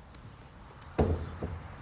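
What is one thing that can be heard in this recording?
Footsteps thud on a tiled floor.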